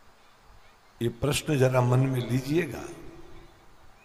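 An elderly man sings a drawn-out phrase into a microphone with echo.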